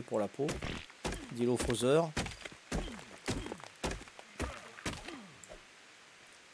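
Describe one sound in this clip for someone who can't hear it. A stone tool strikes rock again and again.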